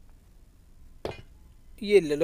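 A metal crowbar clinks as it is picked up.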